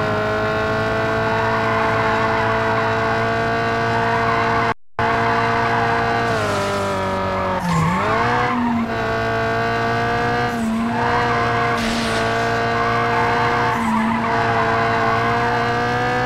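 Tyres screech through tight bends.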